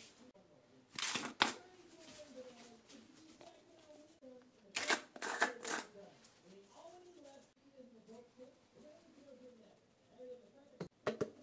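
A spice shaker is shaken in short bursts.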